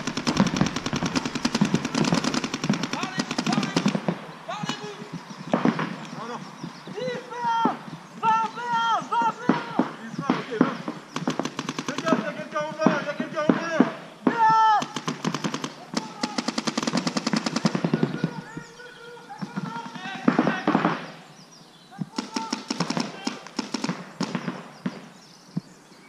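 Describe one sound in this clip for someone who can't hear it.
Paintball markers fire in rapid bursts.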